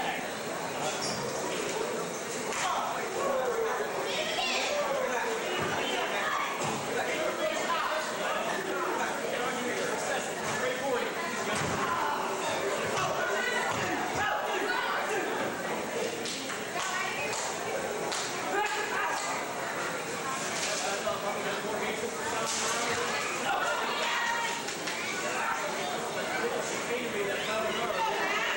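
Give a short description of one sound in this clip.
A crowd of spectators cheers and shouts throughout in a large echoing hall.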